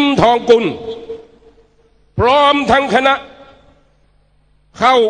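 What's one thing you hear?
A man speaks forcefully into a microphone over loudspeakers, in short bursts with echoing pauses outdoors.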